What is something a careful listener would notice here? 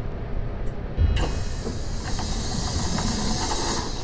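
Bus doors open with a loud pneumatic hiss.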